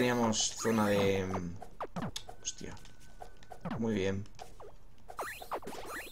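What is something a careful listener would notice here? Small electronic hits sound as a game character strikes enemies.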